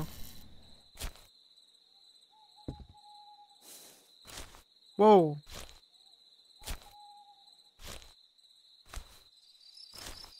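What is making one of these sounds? Footsteps crunch over grass and earth.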